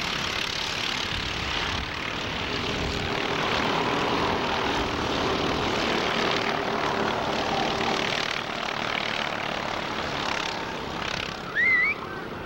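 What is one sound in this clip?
Go-kart engines buzz and whine loudly as the karts race past.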